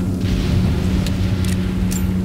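A gun is reloaded with sharp metallic clicks.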